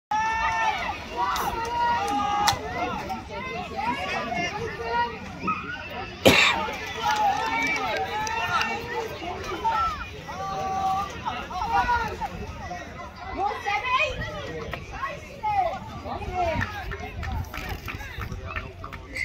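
Women close by shout and call out excitedly, outdoors.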